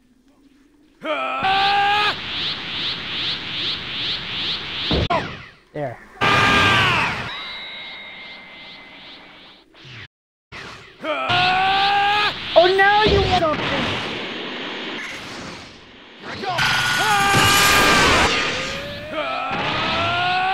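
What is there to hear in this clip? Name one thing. Energy blasts whoosh and crackle in a fight.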